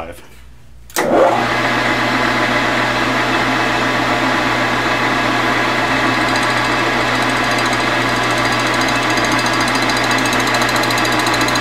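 A lathe motor starts and runs with a steady hum and whine.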